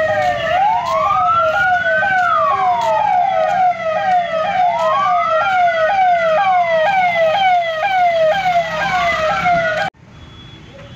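A police siren wails loudly, rising and falling over and over.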